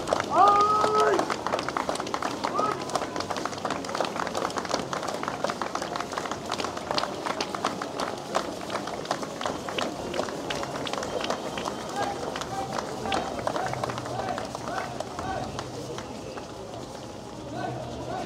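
A crowd murmurs along the street outdoors.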